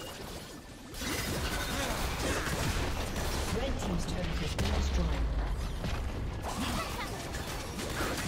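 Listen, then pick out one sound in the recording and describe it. Video game spell blasts and weapon clashes burst in a busy fight.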